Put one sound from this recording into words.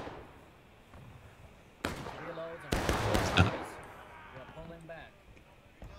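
Rifles fire in scattered shots.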